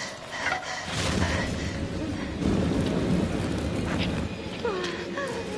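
Fire roars and crackles loudly.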